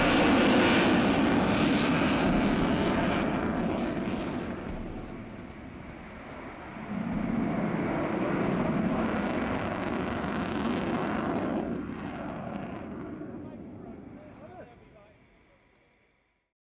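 A jet engine roars overhead, rising and falling as the aircraft turns, then fades away.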